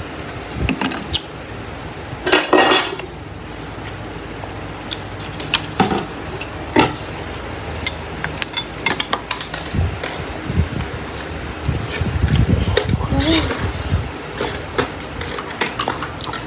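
A man chews and smacks his lips close by.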